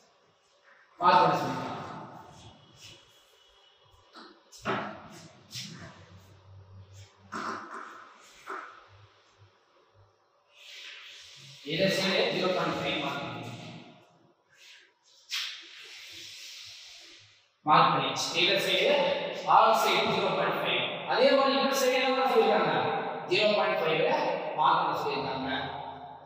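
A man lectures calmly and close by, pausing often.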